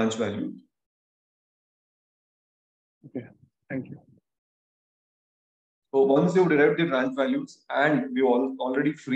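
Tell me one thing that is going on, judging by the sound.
A young man speaks calmly over an online call, with pauses.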